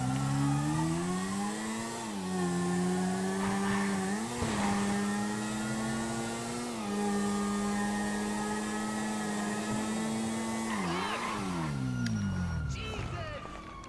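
A motorcycle engine revs and shifts gears as it rides along a street.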